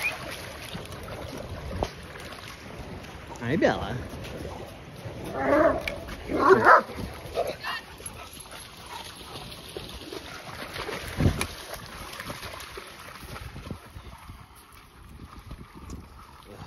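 Dogs splash through shallow water.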